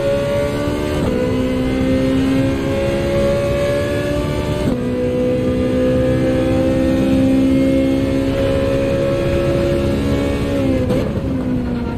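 A racing car engine shifts gear with sudden short drops in pitch.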